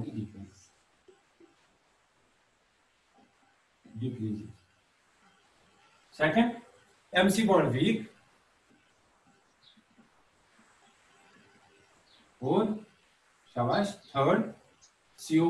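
A man speaks calmly in short phrases, as if lecturing, close by.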